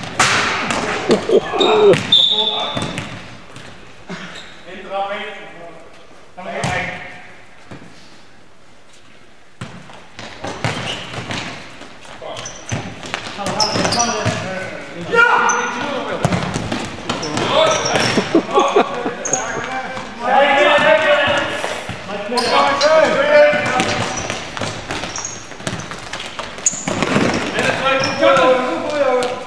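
Men shout to each other across an echoing sports hall.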